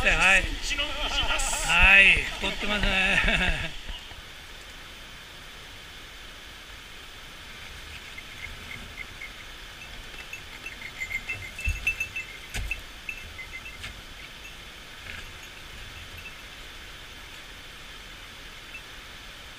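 A mountain stream rushes over rocks.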